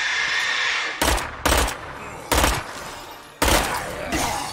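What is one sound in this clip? Gunshots crack loudly outdoors.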